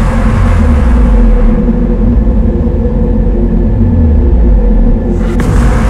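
Strong wind blows and roars.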